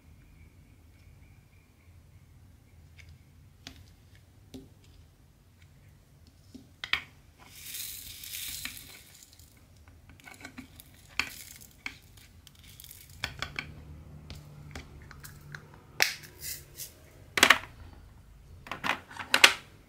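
Fingers tap and press small plastic beads onto a sticky canvas.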